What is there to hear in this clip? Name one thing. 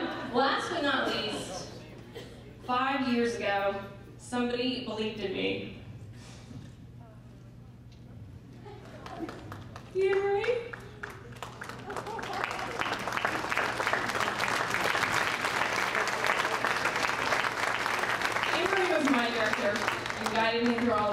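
A young woman speaks with animation into a microphone, heard through loudspeakers in a large hall.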